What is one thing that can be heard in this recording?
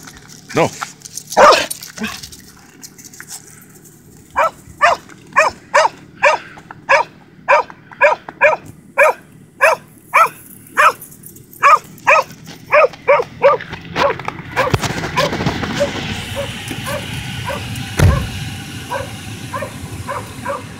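A dog barks repeatedly nearby.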